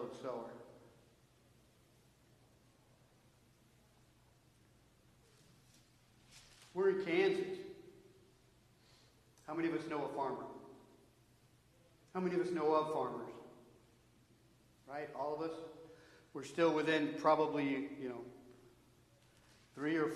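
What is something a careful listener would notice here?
A man speaks with animation in bursts, heard through a microphone in a large echoing hall.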